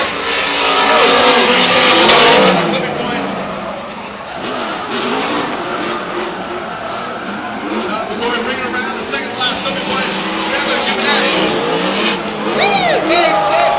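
Racing car engines roar and rev hard nearby.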